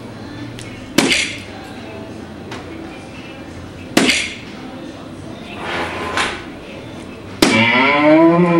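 Darts thud sharply into an electronic dartboard.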